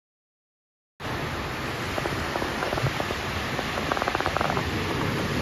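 Waves wash gently onto a rocky shore.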